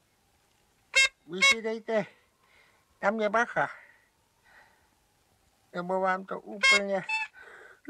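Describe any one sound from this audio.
A small bulb horn honks.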